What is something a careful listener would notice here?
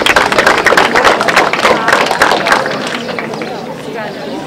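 An audience claps and applauds outdoors.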